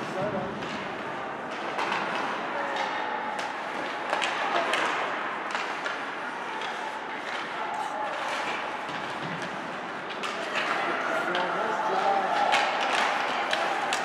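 Spectators shout and chatter in a large echoing rink.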